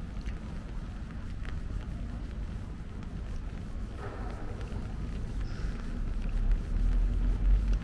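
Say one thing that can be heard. Wind rumbles outdoors, growing stronger toward the end.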